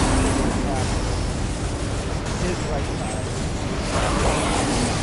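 Weapons clash and crackle loudly in a chaotic fight.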